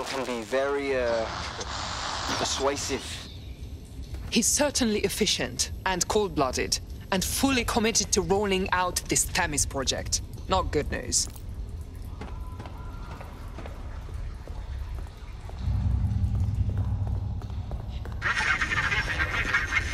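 Footsteps scuff slowly on a stone floor in an echoing tunnel.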